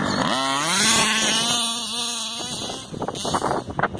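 Tyres skid and scrape across grass and dirt.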